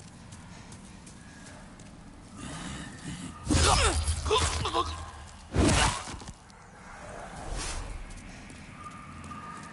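Footsteps scuff across stone.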